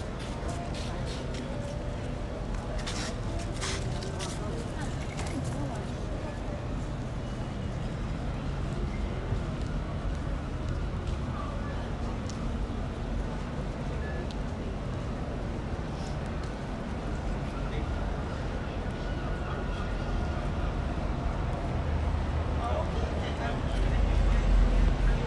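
A crowd of passers-by murmurs in the distance.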